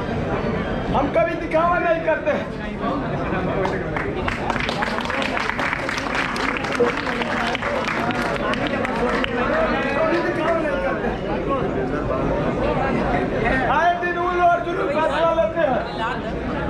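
A young man speaks with animation, close by.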